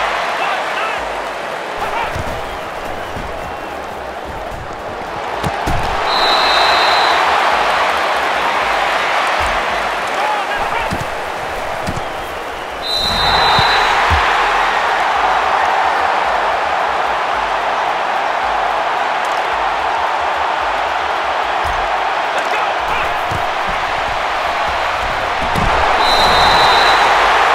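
A large stadium crowd roars and cheers, swelling loudly at times.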